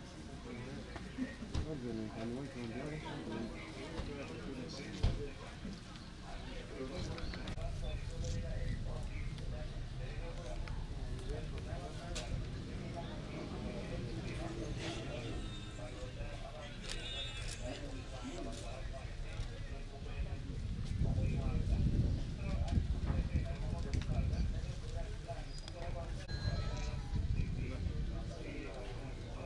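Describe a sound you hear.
A crowd of adults murmurs and talks nearby outdoors.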